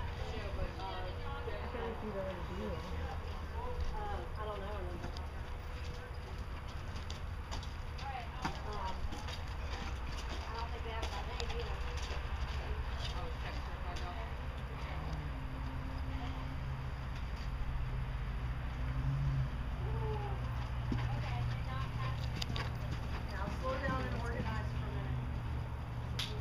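A horse's hooves thud on soft dirt at a canter.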